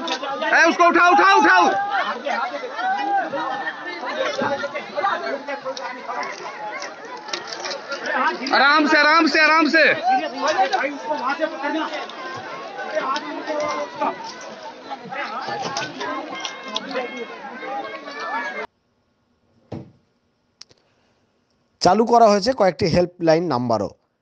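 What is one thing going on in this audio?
A crowd of men and women shout and talk excitedly nearby.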